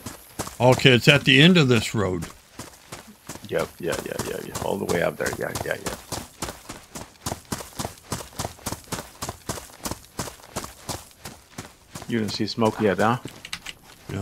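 Footsteps crunch quickly and steadily on a dirt road.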